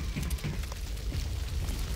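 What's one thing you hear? A jet of flame roars.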